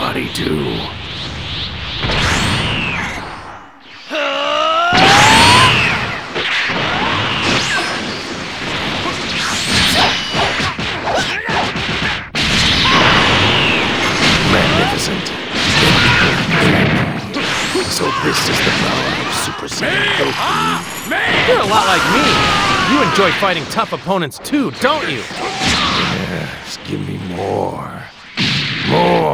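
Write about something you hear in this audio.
Energy blasts whoosh and roar in bursts.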